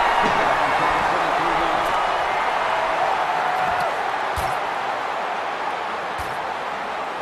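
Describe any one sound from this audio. A large stadium crowd roars steadily and slowly quietens.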